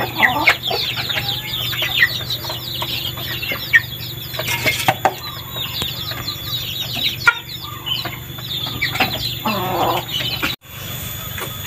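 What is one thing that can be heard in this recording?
Small birds chirp and twitter nearby.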